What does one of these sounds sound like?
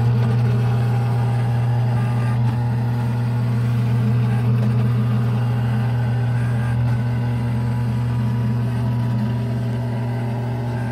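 An arcade coin pusher machine hums steadily.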